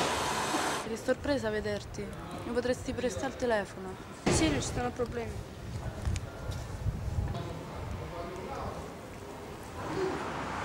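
A young woman speaks quietly up close.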